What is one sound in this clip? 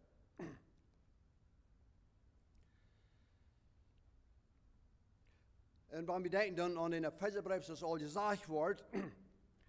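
An elderly man speaks calmly into a microphone in a reverberant hall.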